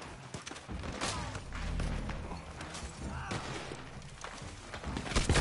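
A horse's hooves thud on grass at a gallop.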